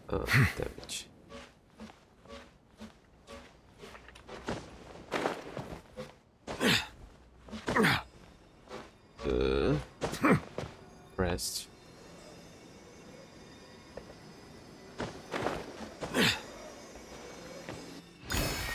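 Magical whooshing effects sound as a character leaps and glides.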